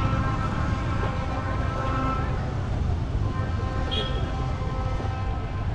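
Traffic rumbles steadily on a nearby road outdoors.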